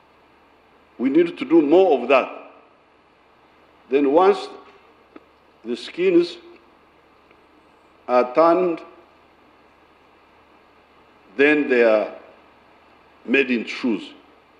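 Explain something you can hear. An elderly man speaks with animation into a microphone in short phrases with pauses, heard over a loudspeaker.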